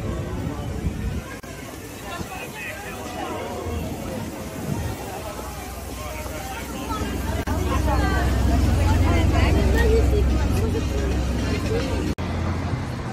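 People talk nearby on a busy street.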